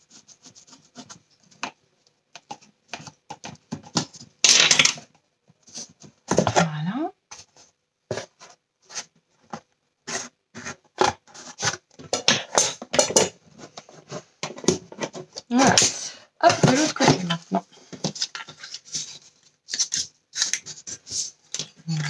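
Cardboard and paper rustle and tap as hands handle a small box.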